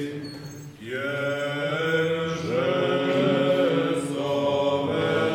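Several men chant together in a resonant, echoing hall.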